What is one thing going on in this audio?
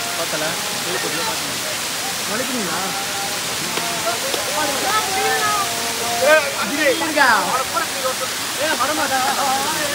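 Young men shout and laugh nearby.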